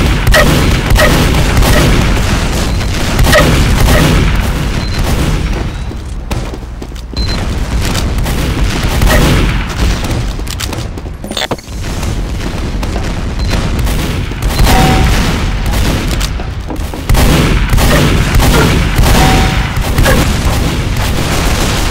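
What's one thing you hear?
Shotgun blasts fire again and again.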